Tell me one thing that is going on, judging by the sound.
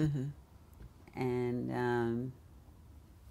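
A middle-aged woman speaks calmly and drawn out, close to a microphone.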